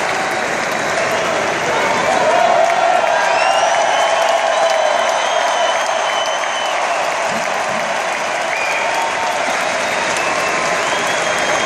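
A rock band plays electric guitars and drums through loud speakers.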